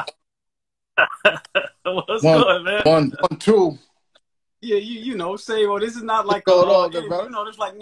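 A man talks and laughs with animation over an online call.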